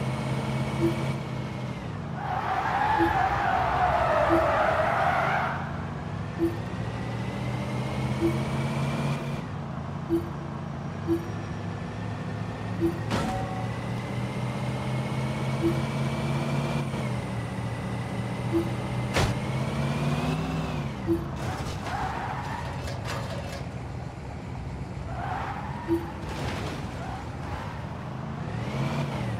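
A car engine drones and revs as the car speeds along.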